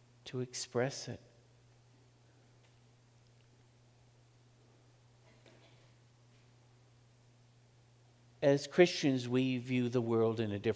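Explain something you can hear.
An elderly man speaks calmly into a microphone, pausing between phrases.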